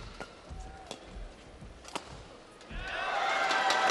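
A racket strikes a shuttlecock with sharp smacks.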